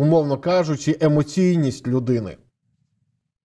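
A man speaks with animation into a microphone over an online call.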